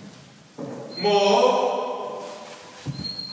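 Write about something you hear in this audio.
A young woman calls out loudly in an echoing hall.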